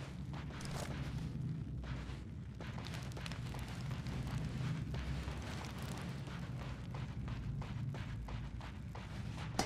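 Footsteps crunch on a dirt floor at a running pace.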